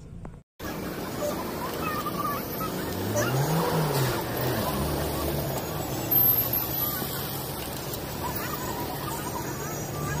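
A man twists a metal cap on a tyre valve.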